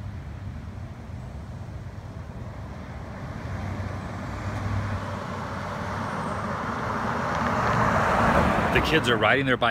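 A car approaches along a road and passes close by.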